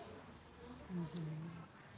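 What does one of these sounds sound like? Fingers peel the soft skin off a fruit.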